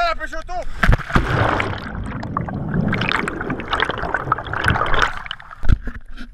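Bubbles rush and roar underwater.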